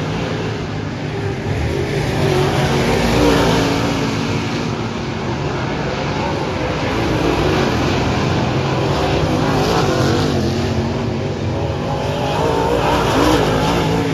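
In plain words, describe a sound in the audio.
Race car engines roar loudly as cars speed around a dirt track.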